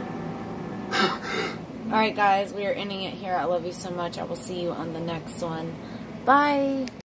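A young girl sobs and wails.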